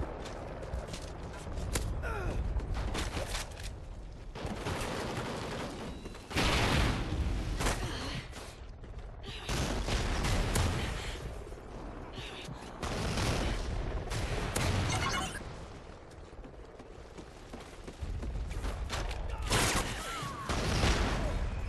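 Gunfire and explosions boom in a video game.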